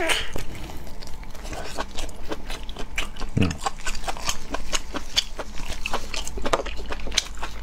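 A man chews and slurps food wetly close to a microphone.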